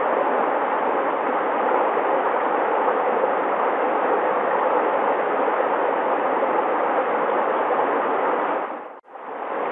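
A shallow stream babbles and splashes steadily over stones.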